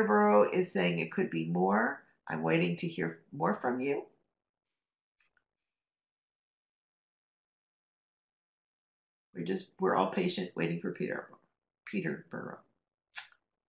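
A young woman speaks calmly through an online call microphone, pausing between phrases.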